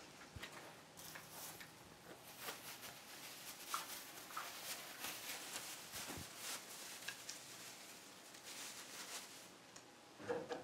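Plastic wrapping rustles and crinkles close by.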